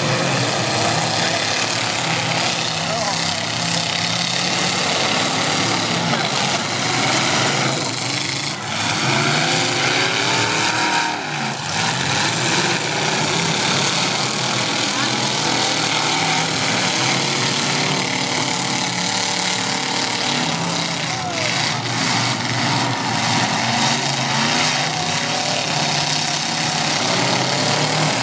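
Car engines roar and rev loudly across a dirt arena.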